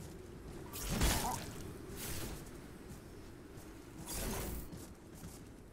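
Footsteps thud on dry ground as a figure runs.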